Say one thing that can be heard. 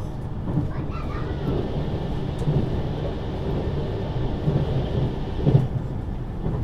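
A rushing whoosh rises and fades as the train passes through a short tunnel.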